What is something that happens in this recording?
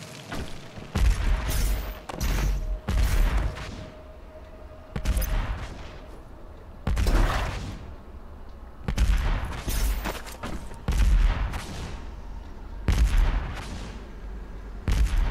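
A heavy gun fires loud, booming blasts in short bursts.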